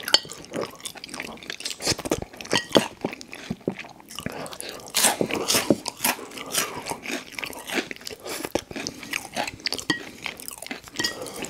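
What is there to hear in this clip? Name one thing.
Chopsticks tap against a glass dish.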